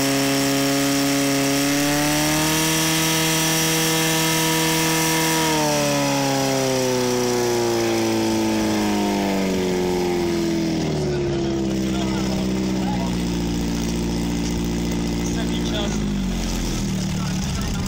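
A portable fire pump engine runs at high revs, then slows down.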